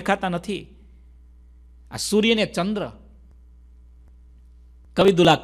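A man speaks calmly in short phrases close to a microphone.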